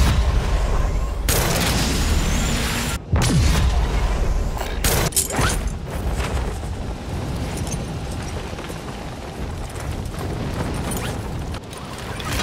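Wind rushes loudly past during a fall through the air.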